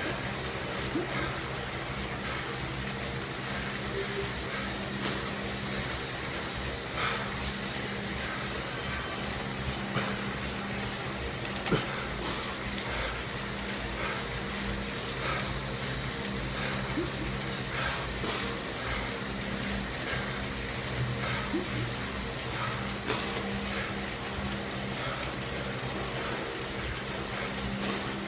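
A bike trainer whirs steadily.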